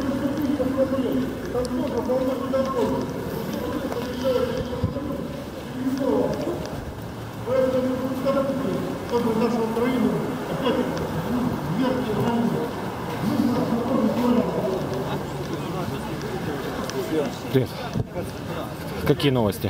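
A crowd of men chants loudly in unison outdoors.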